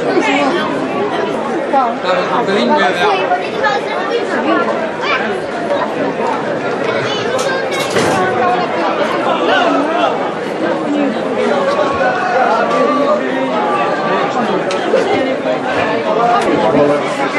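A large crowd outdoors shouts and chatters excitedly.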